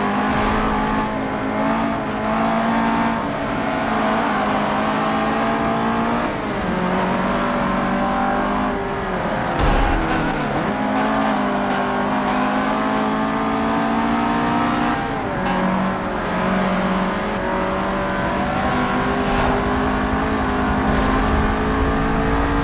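A racing car engine roars at high revs, dropping in pitch with each gear change.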